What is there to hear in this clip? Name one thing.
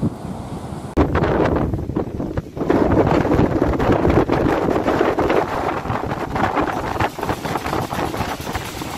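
Strong wind blows loudly and buffets outdoors.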